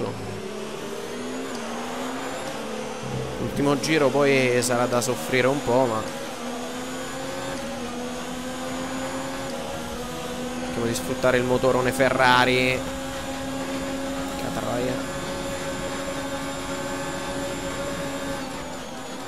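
A racing car engine drones at high revs and climbs through the gears.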